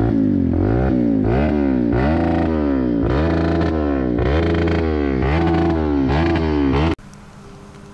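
A four-stroke single-cylinder dirt bike revs up and down.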